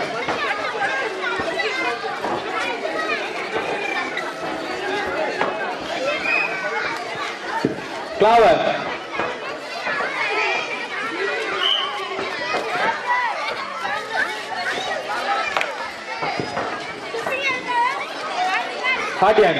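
A large crowd of children and adults chatters loudly outdoors.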